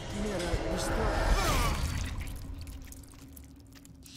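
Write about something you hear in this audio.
A blade stabs into flesh with a loud wet impact.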